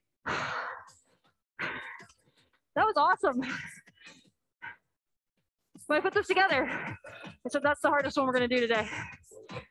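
A young woman speaks with animation over an online call, pausing now and then.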